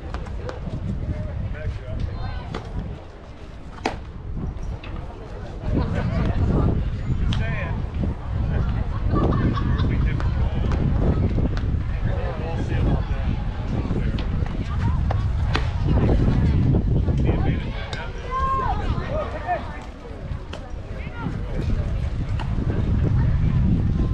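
Young players and adults call out and cheer from a distance outdoors.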